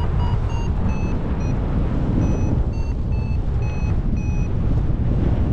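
A flight instrument beeps in quick, short tones of changing pitch.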